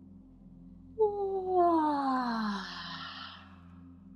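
A young woman lets out a loud cry that falls in pitch, close to the microphone.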